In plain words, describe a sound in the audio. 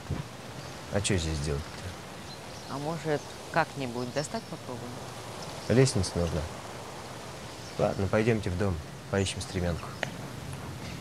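A man speaks in short phrases nearby, outdoors.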